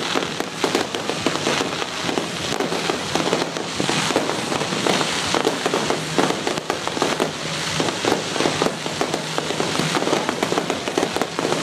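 Fireworks bang and crackle rapidly in the distance.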